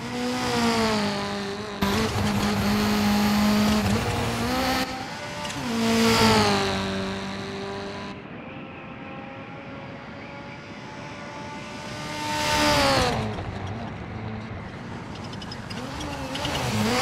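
A rally car engine roars and revs through gear changes.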